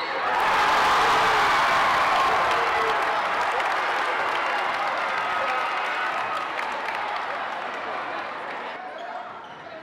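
Sneakers squeak on a wooden court.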